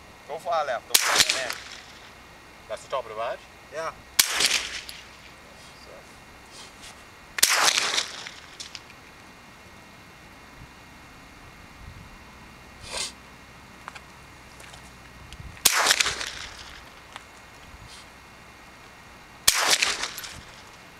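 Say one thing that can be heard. A rifle fires loud sharp shots outdoors, each followed by a brief echo.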